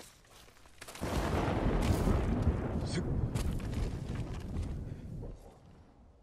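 Rocks scrape and rumble as someone slides down a rocky slope.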